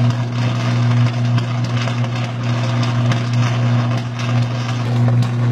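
An electrical arc on a power line buzzes with a deep, steady hum.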